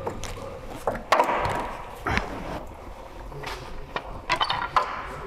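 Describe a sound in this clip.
A wrench clicks and clanks against metal.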